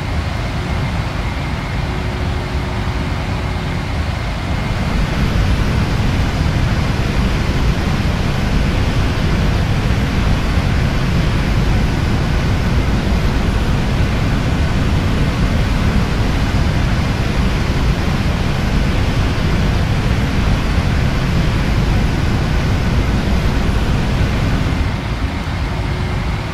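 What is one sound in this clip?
Jet engines roar steadily from inside a cockpit.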